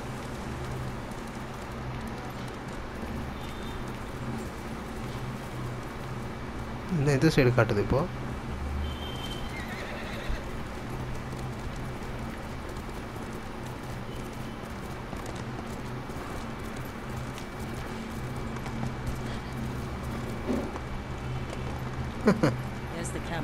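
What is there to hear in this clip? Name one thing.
Horse hooves gallop steadily over grass and dirt.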